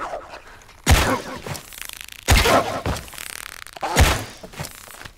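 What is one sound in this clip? A bowstring snaps as arrows are loosed in sharp bursts.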